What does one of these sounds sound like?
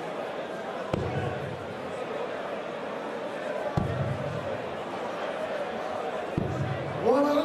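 Darts thud into a board one after another.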